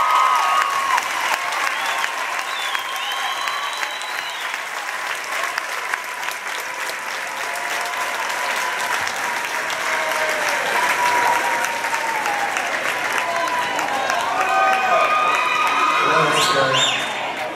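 People in a crowd cheer and shout.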